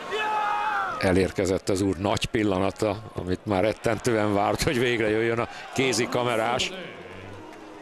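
A crowd cheers and roars.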